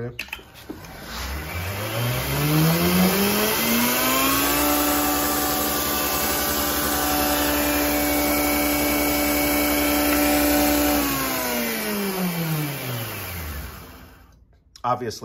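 A belt grinder motor spins up, hums steadily with a whirring belt, then winds down to a stop.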